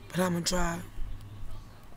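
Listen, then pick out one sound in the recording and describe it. A young woman speaks softly close to a microphone.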